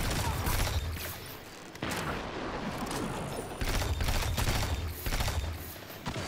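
A video game energy weapon fires in heavy booming bursts.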